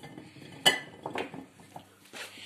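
A hand packs cucumbers into a glass jar with a clink and rustle.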